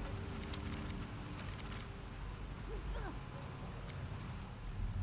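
Wind rumbles low and steady outside.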